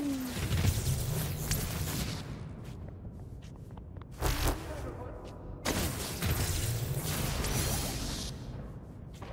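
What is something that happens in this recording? Energy blasts whoosh and crackle in loud bursts.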